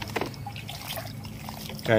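Wet soil crumbles and patters from a hand into water.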